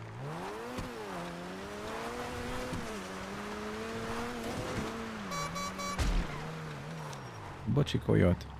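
A car engine hums steadily and revs up and down as the car drives.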